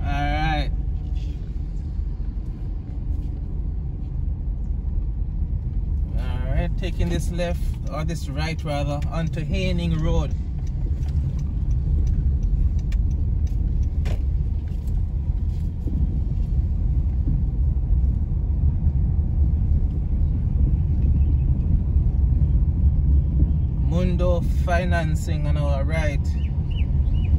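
Tyres rumble low on the road.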